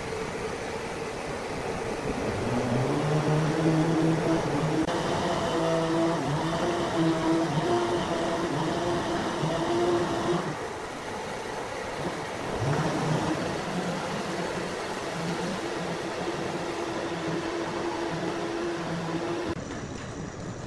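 A large band saw whirs and hums steadily as it cuts through a thick log.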